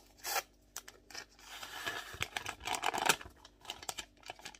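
A paper packet crinkles and rustles.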